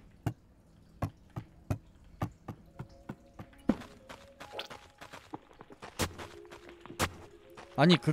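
Quick light footsteps patter across a hard floor.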